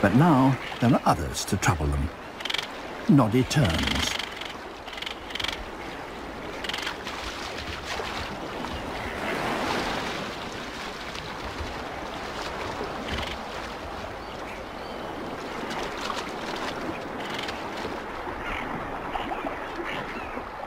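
Water splashes as large birds plunge and feed at the surface.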